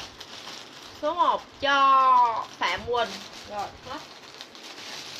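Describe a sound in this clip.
A young woman speaks expressively close to a microphone.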